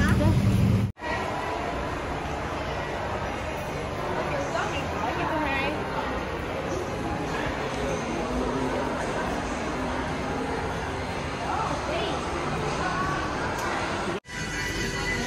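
Many people murmur in a large echoing hall.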